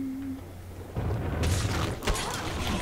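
A magic spell bursts with a rushing whoosh.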